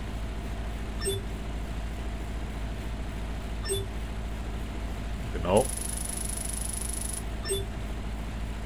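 A game menu gives short electronic blips.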